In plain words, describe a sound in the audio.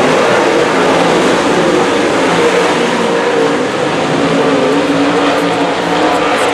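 Race car engines roar loudly as they speed past.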